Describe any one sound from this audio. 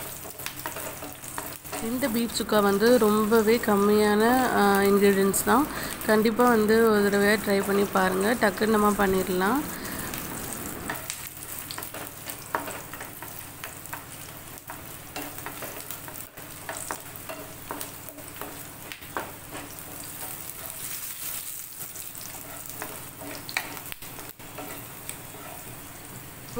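Garlic sizzles softly in hot oil.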